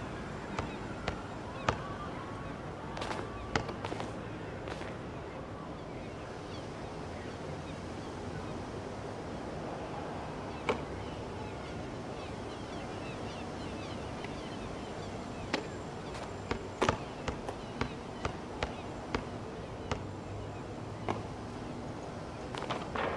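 A basketball bounces sharply on an outdoor court.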